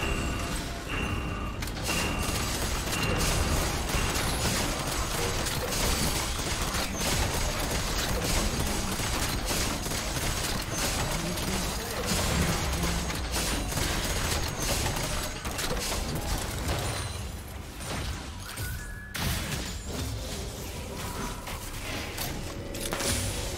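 Spell blasts and weapon strikes crash and crackle in a busy fight.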